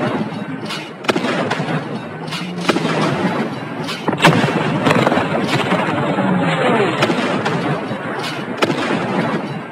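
A pistol fires repeated sharp shots.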